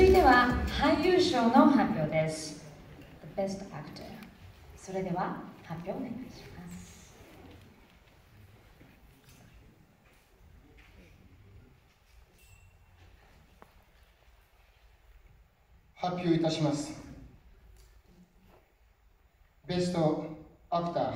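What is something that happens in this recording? A woman speaks calmly into a microphone over loudspeakers in a large hall.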